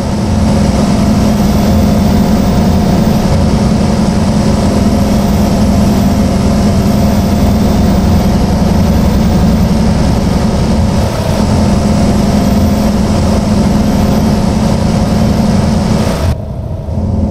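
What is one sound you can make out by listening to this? A heavy truck engine rumbles steadily as it drives along.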